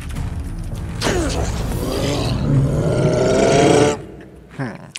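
A creature roars loudly with a deep, growling voice.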